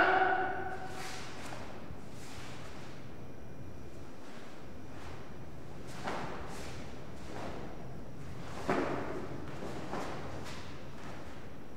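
A martial arts uniform snaps with quick swishes as a man strikes and kicks.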